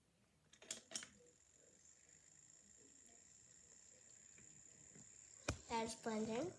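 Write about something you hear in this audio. A toy blender whirs with a steady, thin hum.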